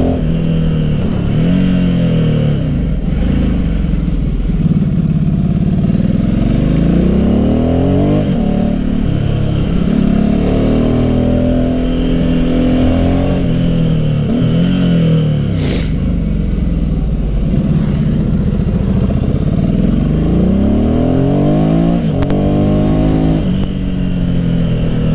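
A motorcycle engine revs up and down, rising and falling in pitch as gears shift.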